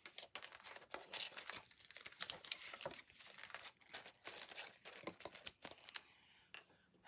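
Paper rustles and taps on a table as it is handled.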